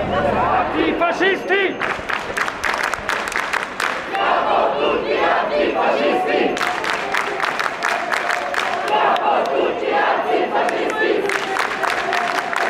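A crowd chants and shouts outdoors.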